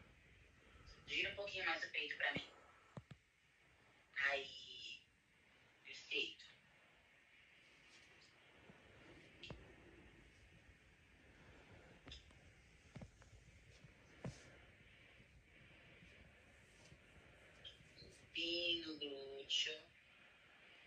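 A young woman speaks briefly and with animation, close by.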